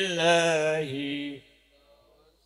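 A man sings loudly through a loudspeaker and breaks off.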